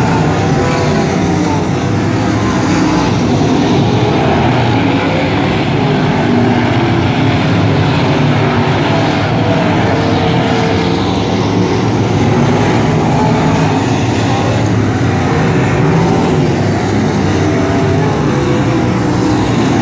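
Race car engines rise and fall in pitch as the cars speed past.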